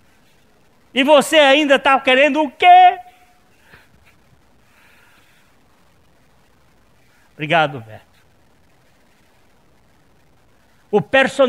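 A man speaks loudly and with animation in a large echoing room.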